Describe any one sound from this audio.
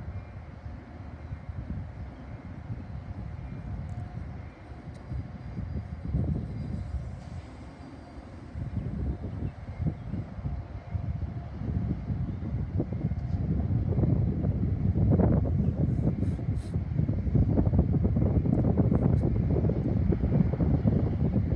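Wind blows outdoors, growing stronger.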